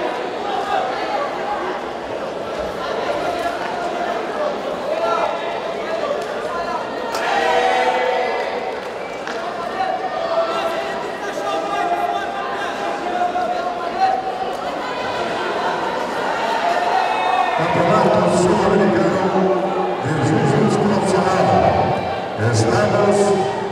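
A crowd of spectators murmurs and shouts in a large echoing hall.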